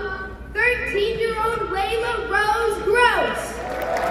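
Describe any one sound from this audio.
A singer's voice rings out through loudspeakers in a large echoing arena.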